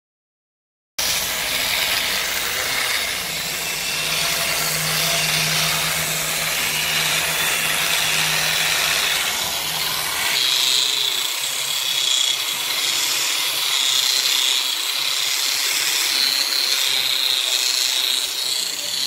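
An angle grinder with a wire brush whirs loudly, scouring steel.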